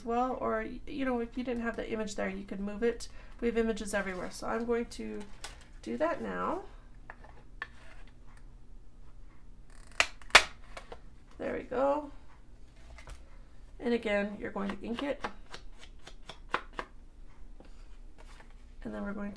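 Paper cards rustle softly as they are handled.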